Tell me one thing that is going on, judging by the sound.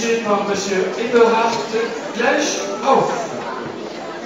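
A man speaks into a microphone in a large hall, his voice carried over loudspeakers.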